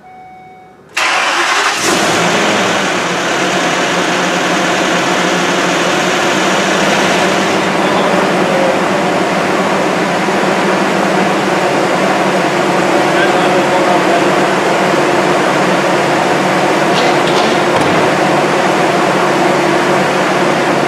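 A cutting torch roars and hisses steadily close by.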